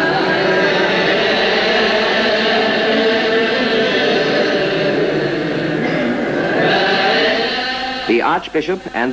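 A choir of men sings in a large echoing hall.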